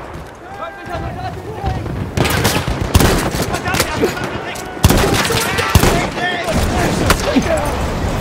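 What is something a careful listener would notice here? A rifle fires sharp shots in quick bursts.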